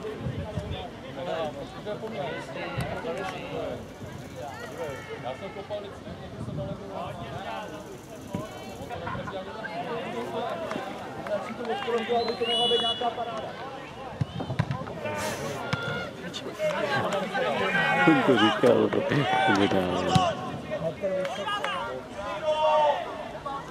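Men talk and call out outdoors, some close by.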